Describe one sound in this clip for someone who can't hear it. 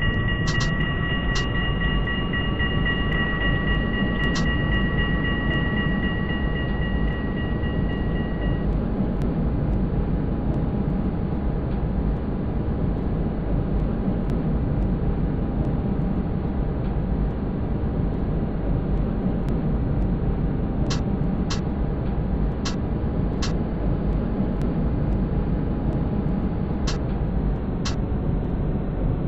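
A tram rumbles steadily along its tracks.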